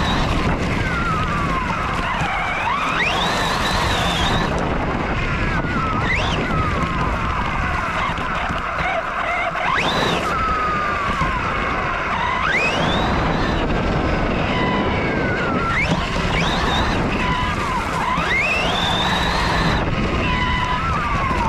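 RC truck tyres tear through grass and dirt.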